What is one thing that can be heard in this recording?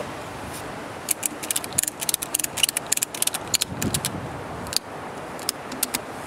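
A ratchet strap clicks as it is tightened.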